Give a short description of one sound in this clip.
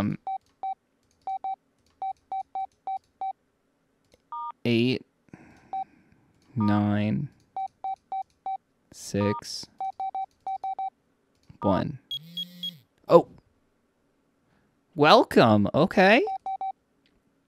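Short electronic beeps sound as phone keys are pressed.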